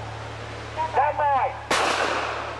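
A man calls out loudly nearby.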